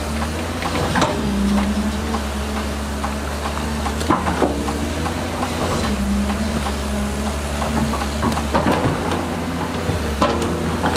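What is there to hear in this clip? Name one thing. A metal excavator bucket clanks and scrapes in wet mud.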